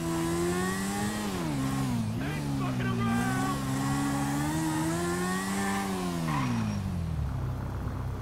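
A motorcycle engine hums and revs up and down, echoing in a large enclosed space.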